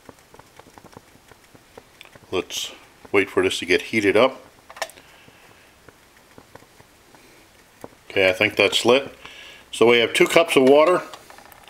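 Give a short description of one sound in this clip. A small stove flame hisses softly.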